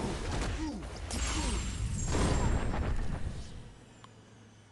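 Punches and blasts in a video game hit hard in quick bursts.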